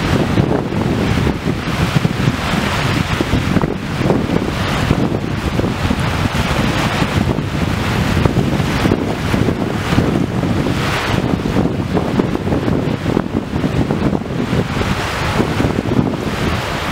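Wind gusts through palm fronds.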